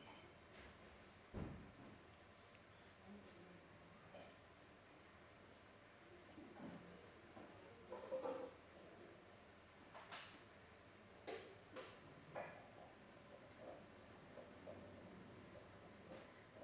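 Hands softly rub and press against a palm.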